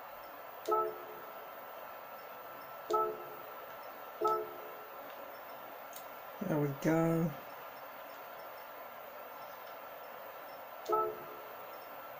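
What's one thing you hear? Short electronic menu tones beep from a television speaker.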